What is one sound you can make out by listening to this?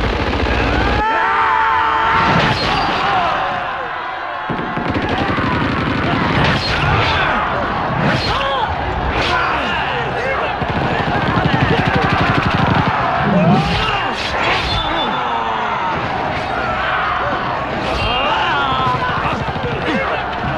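A large crowd of men shouts battle cries.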